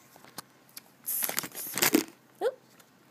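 Hands handle a small plastic toy against crinkly packaging.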